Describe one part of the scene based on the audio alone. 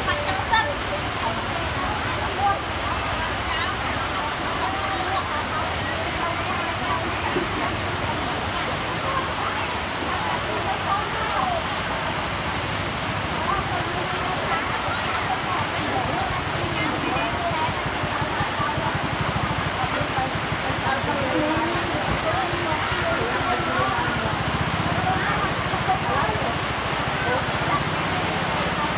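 Many men and women chatter in a busy outdoor market.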